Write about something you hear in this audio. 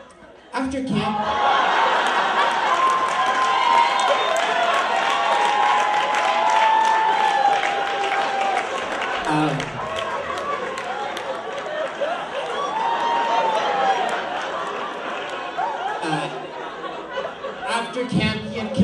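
An audience cheers and applauds loudly.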